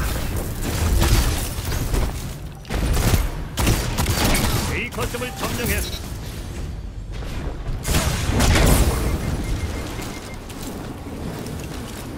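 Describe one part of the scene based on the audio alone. Sci-fi weapons fire in a video game.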